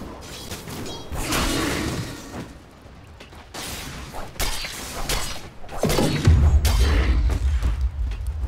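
Magic spells crackle and boom in a fantasy battle.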